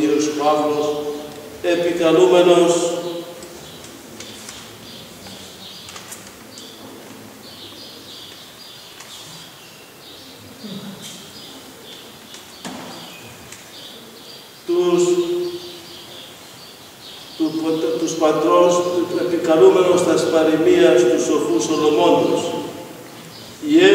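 A man chants a prayer in a low, steady voice, echoing in a large room, with pauses between phrases.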